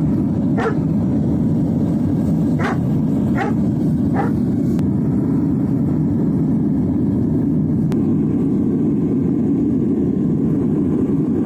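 A furnace fire roars steadily.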